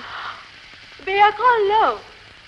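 A woman speaks with feeling, her voice rising and falling.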